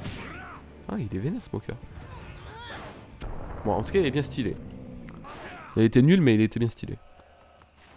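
Punches land with heavy thuds and whooshes.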